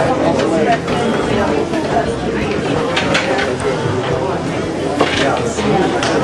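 Dishes clatter against a metal rack.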